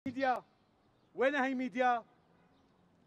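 An elderly man calls out loudly close by.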